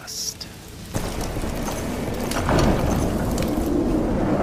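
A heavy door rumbles slowly open.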